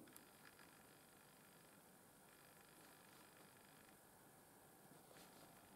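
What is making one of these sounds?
A fine tool taps and scrapes softly on a fingernail.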